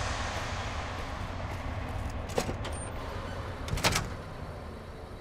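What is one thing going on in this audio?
A heavy metal door opens with a loud clank.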